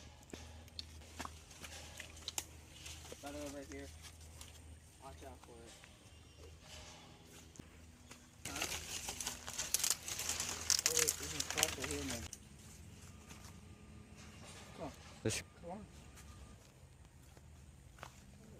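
Footsteps crunch on sandy ground.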